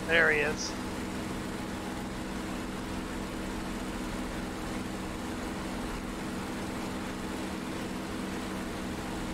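A propeller aircraft engine drones steadily.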